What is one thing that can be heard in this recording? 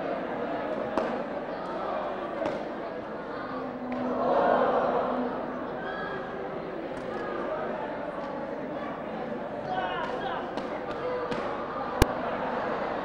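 Wooden sticks knock together sharply.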